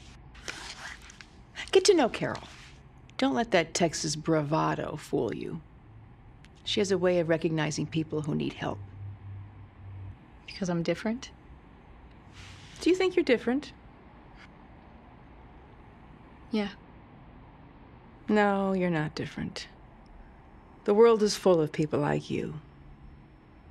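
A second woman asks questions in a measured voice, close by.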